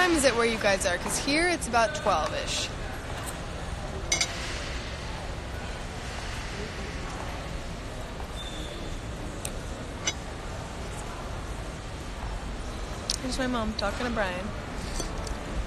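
A young woman talks animatedly close to the microphone.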